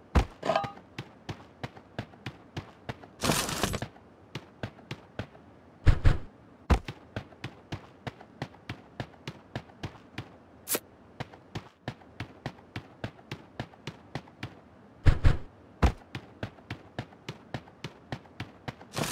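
Quick footsteps patter steadily on grass and floors.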